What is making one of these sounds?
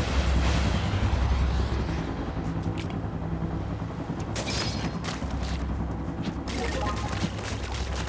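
Ink splatters with wet, squelching splashes.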